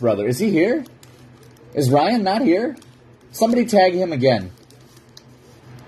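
A foil wrapper crinkles.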